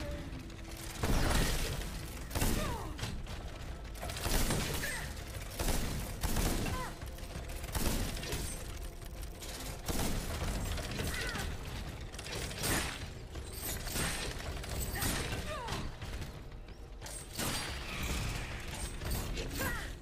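Blades swing and strike hard in a fierce fight.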